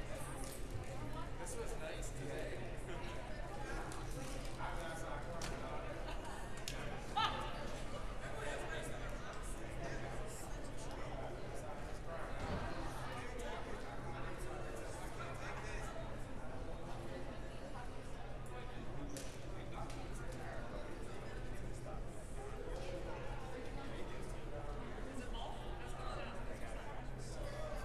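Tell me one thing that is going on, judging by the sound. A crowd of people chatter in a large echoing gym.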